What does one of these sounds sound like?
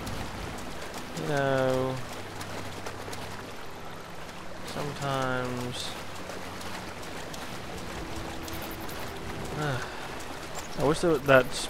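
Water sloshes softly as a swimmer paddles through it.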